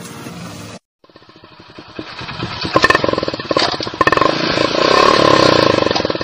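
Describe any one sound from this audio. A motorcycle engine approaches and grows louder.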